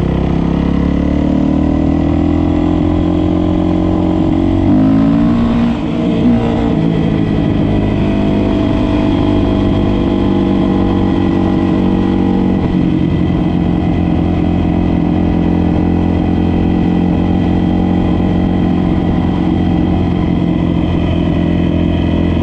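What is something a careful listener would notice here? A dirt bike engine roars loudly, revving up and shifting gears.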